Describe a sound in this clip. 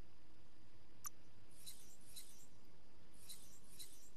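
Short electronic clicks and chimes sound.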